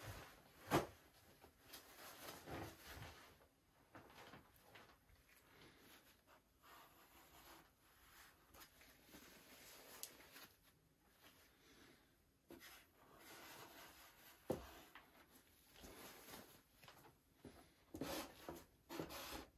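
A paper towel crinkles in gloved hands.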